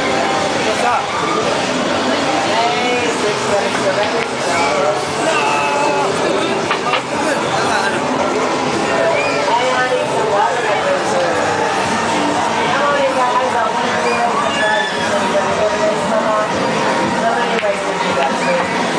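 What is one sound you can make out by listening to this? A crowd of men and women chatters loudly.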